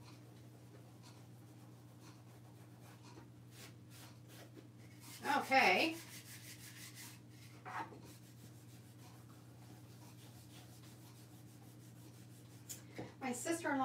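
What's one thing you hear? Hands rub across a small wooden board.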